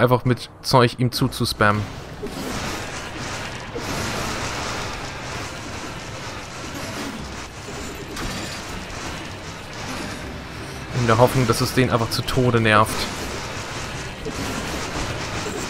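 Blades slash and clang in quick, repeated blows.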